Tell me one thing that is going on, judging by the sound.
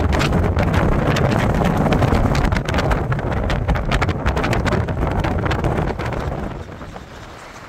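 Tyres rumble on a road.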